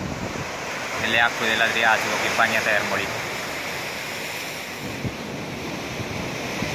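Waves wash and break against rocks on the shore.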